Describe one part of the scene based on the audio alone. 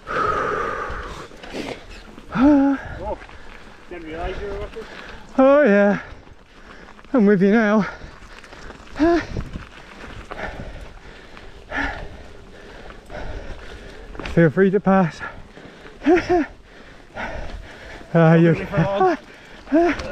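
Bicycle tyres roll and crunch over a rough dirt and gravel trail.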